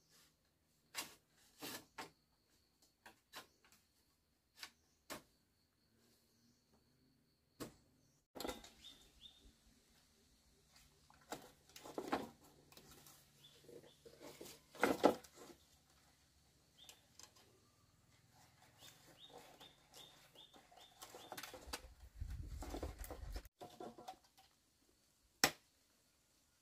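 Bamboo slats knock and rattle sharply.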